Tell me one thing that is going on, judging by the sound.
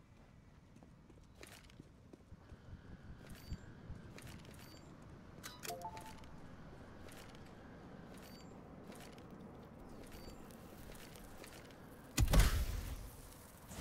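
Footsteps crunch over sand and rock.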